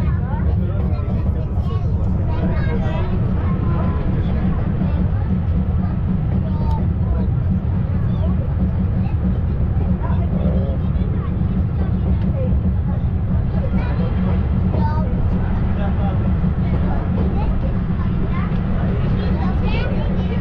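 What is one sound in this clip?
An open train car rumbles and rattles steadily along a track.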